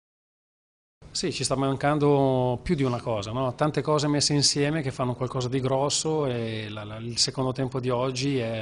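A middle-aged man speaks calmly into microphones up close.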